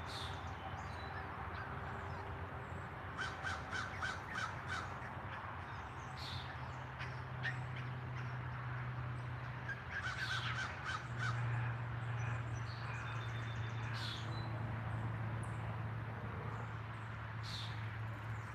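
Chicks peep softly nearby.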